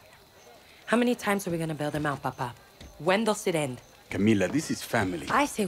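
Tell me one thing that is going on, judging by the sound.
A young woman speaks urgently up close.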